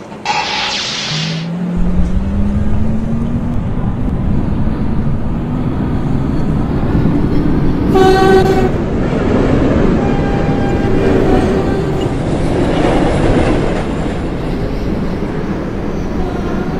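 A subway train pulls away, its electric motors whining and rising in pitch.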